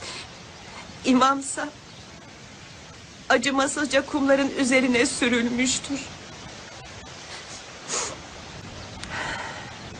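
A young woman speaks close by in a tearful, breaking voice.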